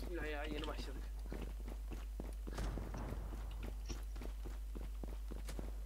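Footsteps tap quickly on stone pavement.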